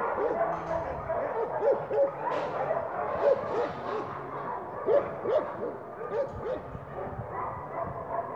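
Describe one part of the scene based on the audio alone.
Two dogs growl and snarl while play-fighting.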